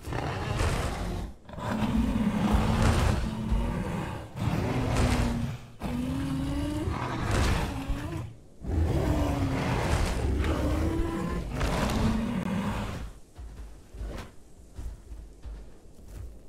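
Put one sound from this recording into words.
Heavy footsteps of a large creature thud on dry ground.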